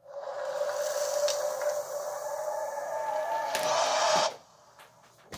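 Eerie game music drones through a small speaker, then cuts off.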